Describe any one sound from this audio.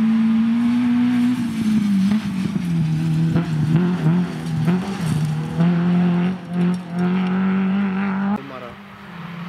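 A small hatchback rally car races at full throttle, shifting gears.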